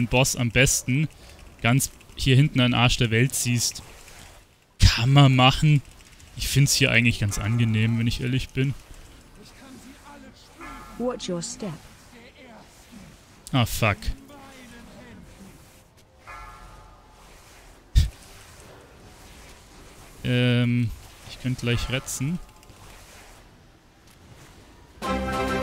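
Magic spells whoosh and clash in a fantasy battle.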